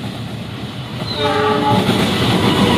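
A train horn sounds briefly.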